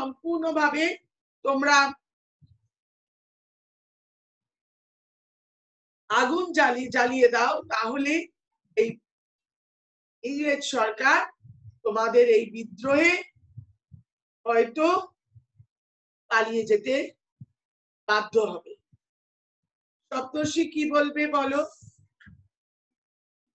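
A woman speaks calmly in bursts over an online call, with pauses between phrases.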